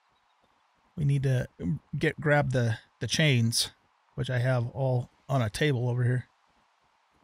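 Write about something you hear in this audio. A man talks animatedly, close to a microphone.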